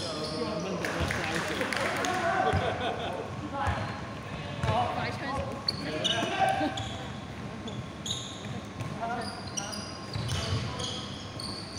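A basketball bounces with hollow thuds.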